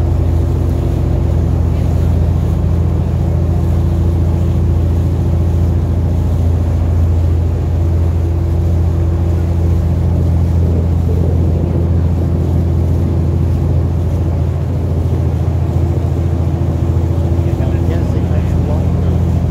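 A boat engine hums steadily and loudly.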